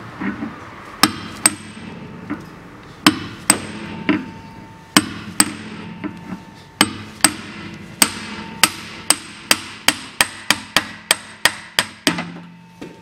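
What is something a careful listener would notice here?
A hammer strikes a metal part with sharp, ringing blows, faster toward the end.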